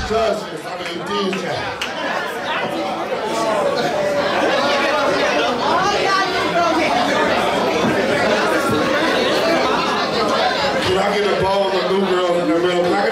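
A crowd chatters and cheers in a crowded, echoing room.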